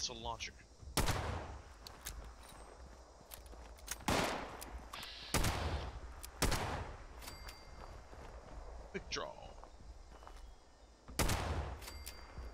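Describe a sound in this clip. Gunshots crack loudly, one at a time.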